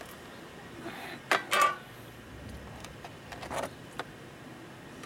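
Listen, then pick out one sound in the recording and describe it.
A metal roller shutter rattles and clanks.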